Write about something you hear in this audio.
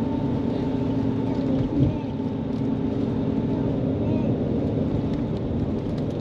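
A vehicle rumbles steadily along a road, heard from inside.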